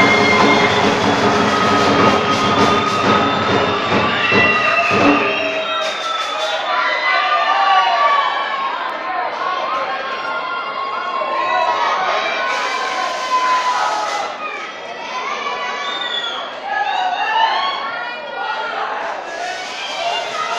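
Music plays loudly over loudspeakers in a large hall.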